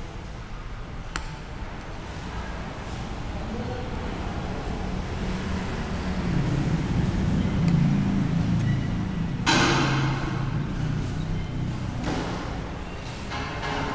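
A spoon and fork clink against a bowl.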